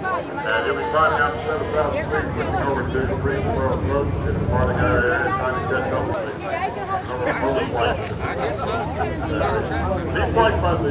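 A crowd of people chatters nearby outdoors.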